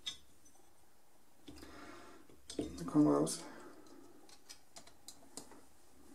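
Small plastic and metal parts click and tap as they are handled.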